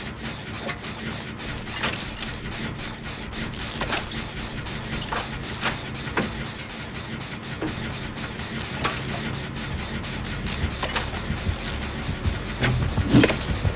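Metal parts clank and rattle as a generator is worked on.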